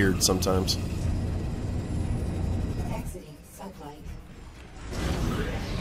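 A spaceship's engines roar with a deep, steady rumble.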